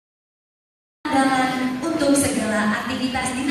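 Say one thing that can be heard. A woman speaks into a microphone over loudspeakers in a large echoing hall.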